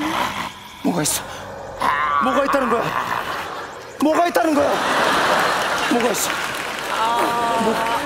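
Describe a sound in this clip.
A man wails and speaks in a strange, exaggerated voice.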